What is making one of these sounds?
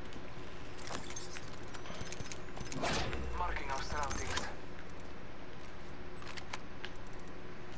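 Game menu sounds click as items are picked up.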